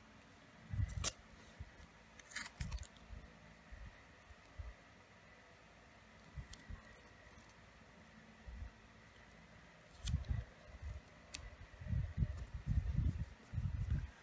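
Hands rub and press on paper with soft thumps and rustles.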